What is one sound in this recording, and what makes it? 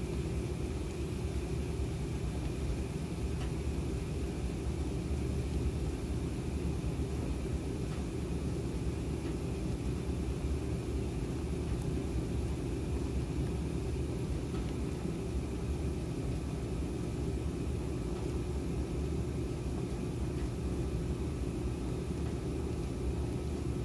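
A washing machine agitator churns with a steady low rumble.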